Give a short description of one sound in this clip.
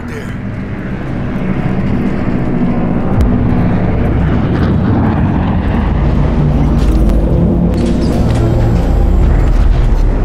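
Footsteps splash on wet pavement.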